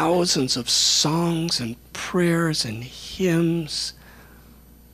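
A middle-aged man speaks with animation into a microphone, close by.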